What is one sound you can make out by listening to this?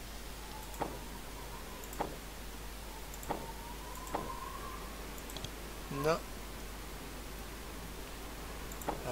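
Short game chimes and clicks sound as items are picked up and dropped.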